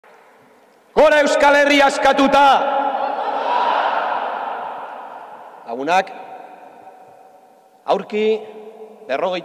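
A man shouts forcefully through a loudspeaker microphone, echoing in a large hall.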